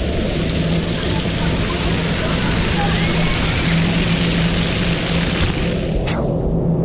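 Water sprays and splashes down close by.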